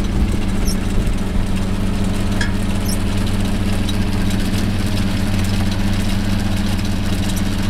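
A fishing boat's diesel engine drones as the boat motors at sea.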